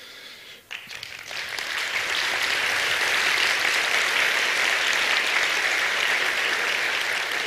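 A large audience applauds in a large hall.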